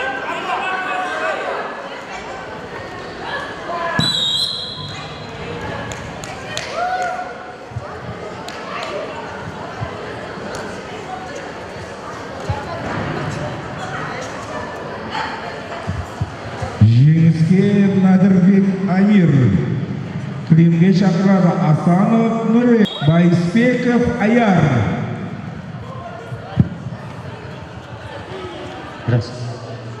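A crowd of spectators chatters in an echoing hall.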